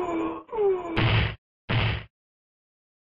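A body hits the ground with heavy thuds.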